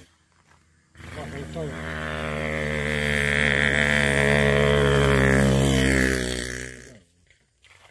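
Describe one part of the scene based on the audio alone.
A motorcycle engine approaches, roars past and fades.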